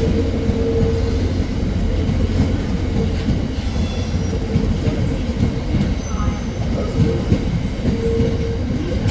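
Wheels squeal faintly on the track now and then.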